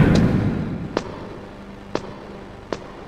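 Metal ladder rungs clank as someone climbs.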